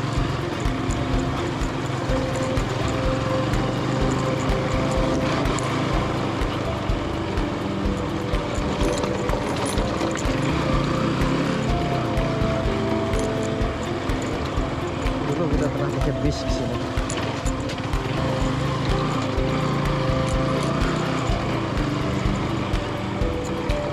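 A motorcycle engine hums steadily up close, its pitch shifting as it speeds up and slows down.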